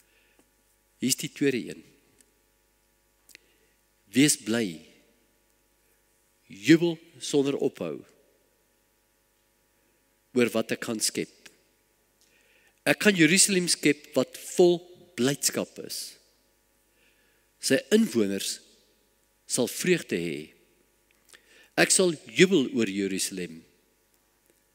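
An elderly man speaks calmly through a microphone, in short phrases with pauses.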